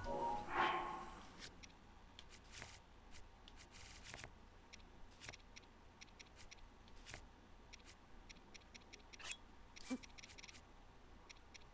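Short menu clicks tick quickly one after another.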